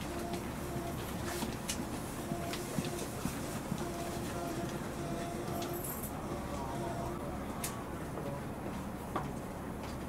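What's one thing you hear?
A train rumbles steadily as it rolls along, with faint clicks and knocks.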